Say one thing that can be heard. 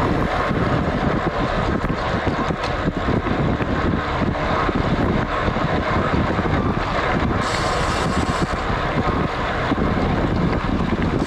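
Wind rushes past a moving road cyclist.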